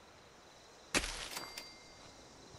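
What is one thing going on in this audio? A short, bright game sound effect rings out as an object is placed.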